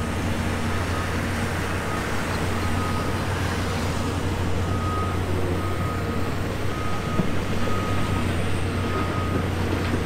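An excavator's hydraulics whine as its arm swings.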